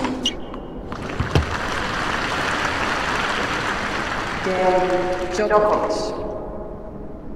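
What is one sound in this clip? A large crowd cheers and applauds in a big arena.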